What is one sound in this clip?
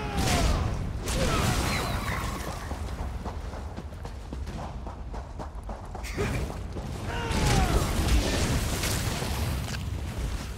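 A creature screeches during a fight.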